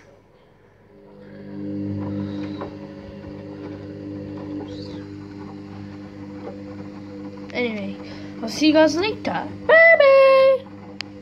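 A washing machine motor hums steadily.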